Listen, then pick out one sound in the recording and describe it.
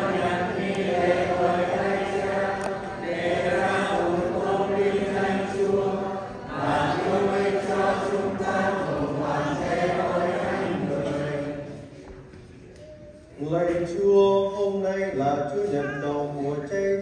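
A man chants in a sustained singing voice through a loudspeaker, in a reverberant hall.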